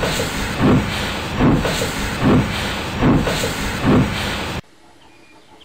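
A steam engine chuffs rhythmically as it approaches.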